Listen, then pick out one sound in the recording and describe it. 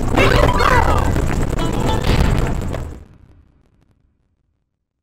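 Upbeat video game music plays and fades out.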